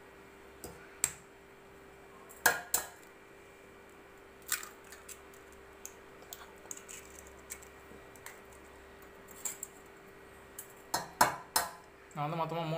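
An egg taps sharply against the rim of a metal bowl.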